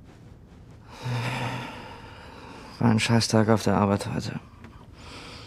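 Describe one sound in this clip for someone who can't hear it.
A young woman speaks quietly and wearily nearby.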